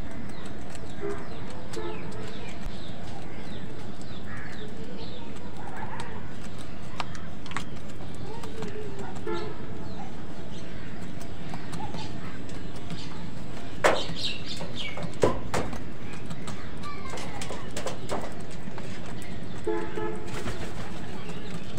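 Crows caw harshly nearby.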